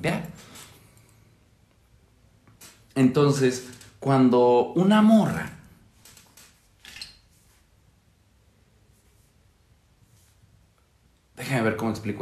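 A man speaks close to a microphone, in short bursts with pauses.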